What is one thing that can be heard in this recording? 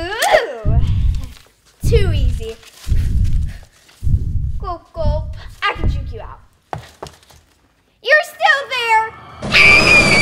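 A young girl shrieks and cries out with excitement.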